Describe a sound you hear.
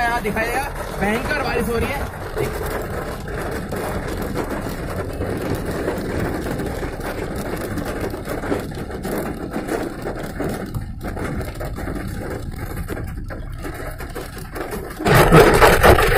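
Heavy rain drums on a car's windows.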